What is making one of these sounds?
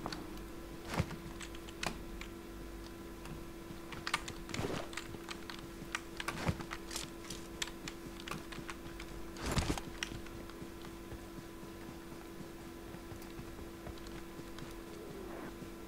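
Footsteps thud quickly over ground and grass.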